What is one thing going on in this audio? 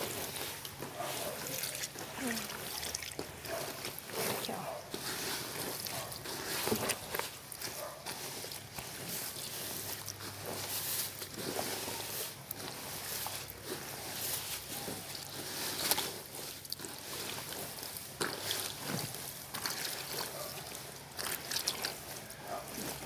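Wet cloth swishes and splashes in water.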